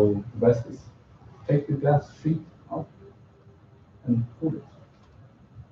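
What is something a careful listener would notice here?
A man speaks calmly in a room with a slight echo.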